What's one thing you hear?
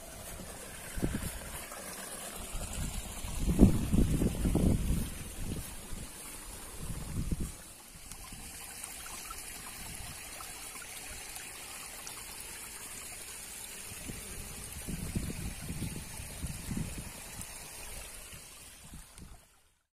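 Wind gusts outdoors and rustles the tall grass.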